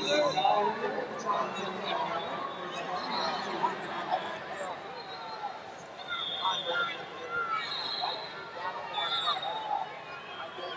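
Wrestlers' shoes squeak on a mat.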